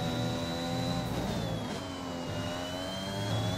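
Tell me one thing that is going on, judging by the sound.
A Formula One car's engine drops in pitch as the driver brakes and shifts down for a corner.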